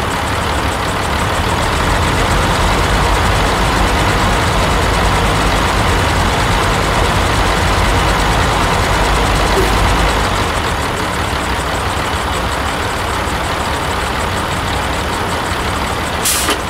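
A diesel truck engine idles with a steady low rumble.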